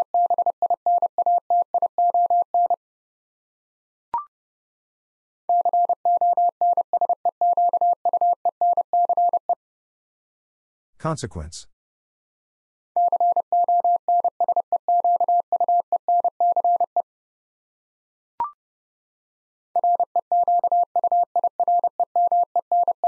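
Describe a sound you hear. A telegraph key taps out Morse code in quick, steady beeps.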